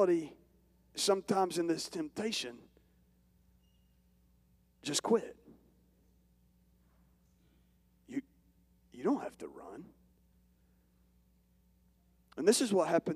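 A man speaks with animation into a microphone over loudspeakers, pausing often.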